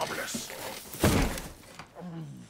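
A heavy thud crashes into straw.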